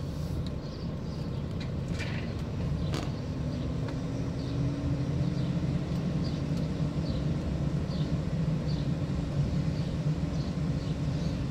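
A car engine hums low and steady from inside the car as it drives slowly.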